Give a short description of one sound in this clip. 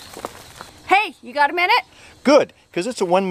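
A woman speaks excitedly close by.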